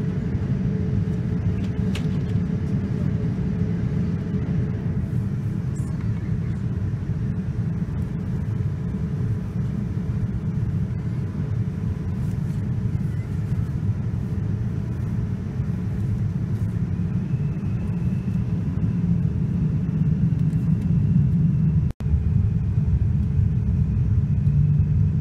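A jet airliner's engines roar with a steady, low, muffled drone inside the cabin.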